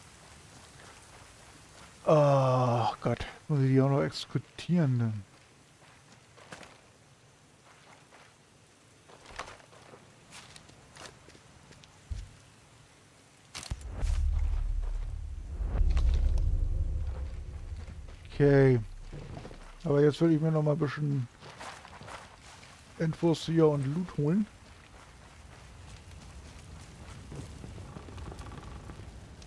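Footsteps tread on grass and soft ground.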